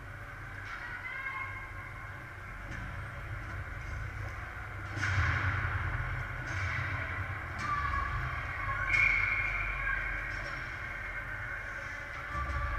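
Young players shout in the distance across a large echoing rink.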